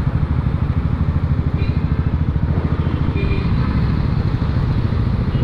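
Other motorbikes and cars drone along a busy road nearby.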